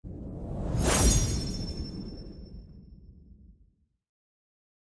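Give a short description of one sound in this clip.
A deep whooshing boom swells, strikes with a metallic ring, and slowly fades.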